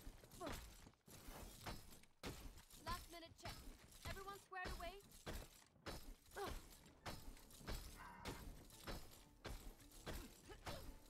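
A flail swings and strikes with sharp game sound effects.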